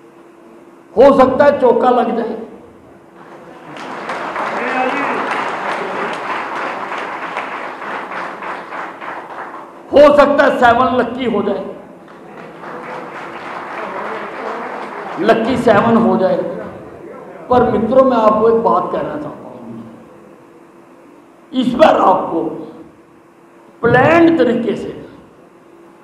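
An elderly man speaks forcefully through a loudspeaker.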